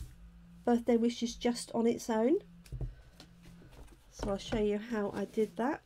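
Stiff paper cards rustle and tap as hands handle them.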